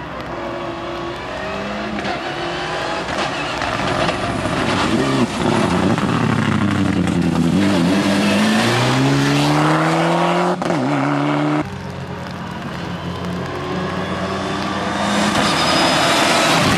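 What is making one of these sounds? Tyres hiss and spray water on a wet road.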